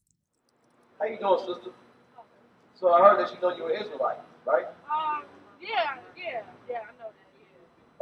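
A man speaks loudly and forcefully outdoors.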